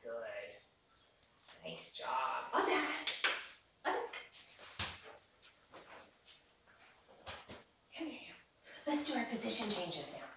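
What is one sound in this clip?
A woman talks to a dog with animation, close by.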